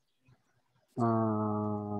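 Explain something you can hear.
A man speaks with drawn-out words over an online call.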